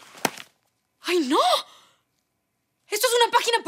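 A young woman exclaims loudly in surprise.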